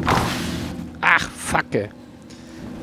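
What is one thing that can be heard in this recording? A body lands hard with a thud and rolls.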